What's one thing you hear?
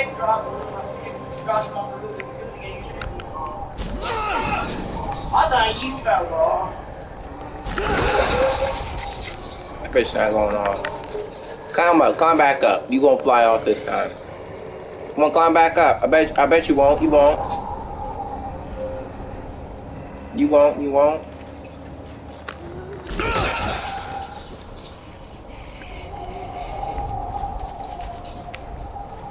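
Footsteps run across a gravelly rooftop.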